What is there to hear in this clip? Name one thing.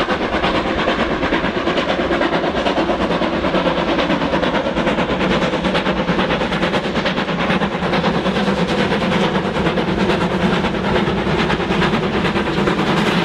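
Steam locomotive engines rumble and clank along the track.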